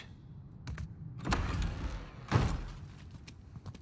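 A heavy wooden door creaks and swings open.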